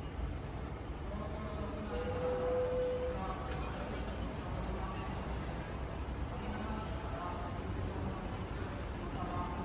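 A monorail train hums as it rolls along an elevated track.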